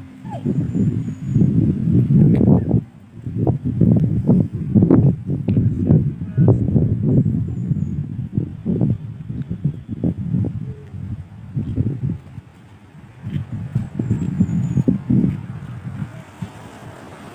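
Strong wind gusts buffet and rumble outdoors.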